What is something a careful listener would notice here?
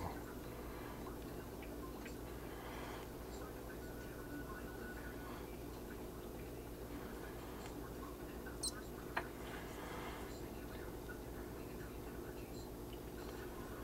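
A toothpick taps lightly against pins.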